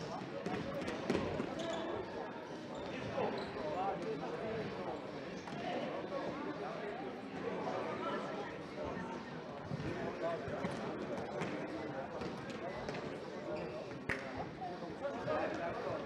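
A crowd of spectators chatters throughout a large echoing hall.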